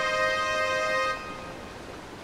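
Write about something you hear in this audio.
A bright electronic chime rings out and fades.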